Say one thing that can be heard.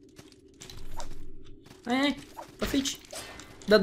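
A blade swishes and strikes.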